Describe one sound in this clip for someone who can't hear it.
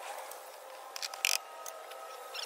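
A metal wrench clinks against an engine.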